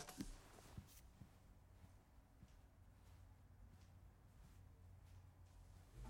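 Footsteps walk softly across a wooden floor.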